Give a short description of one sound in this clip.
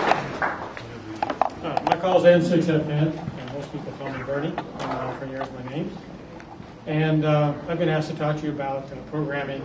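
An older man speaks calmly into a microphone.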